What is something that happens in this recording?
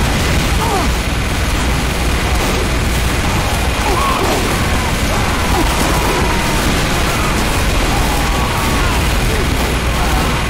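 A heavy machine gun fires in a rapid, continuous roar.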